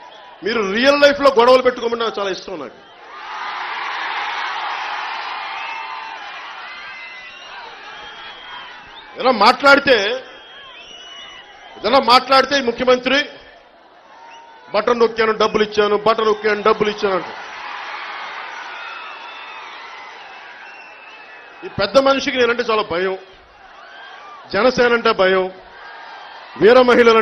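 A man speaks forcefully into a microphone over loudspeakers outdoors.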